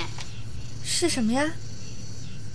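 A young woman asks a question, close by.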